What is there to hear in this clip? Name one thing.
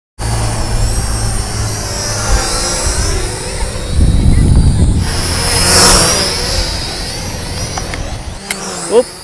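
A small remote-controlled aircraft's motor whines overhead, rising and falling in pitch.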